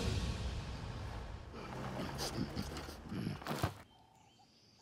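A rhino slides to a stop on dusty ground.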